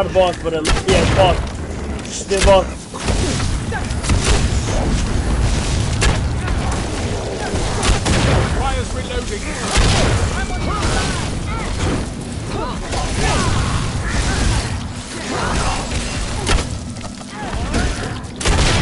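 Gunshots crack in short bursts close by.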